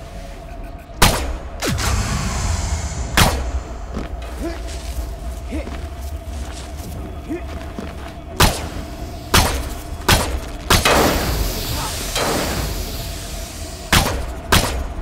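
Gunshots crack loudly in sharp bursts.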